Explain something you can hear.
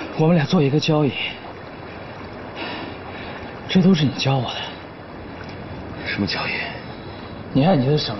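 A young man speaks slowly in a strained voice, close by.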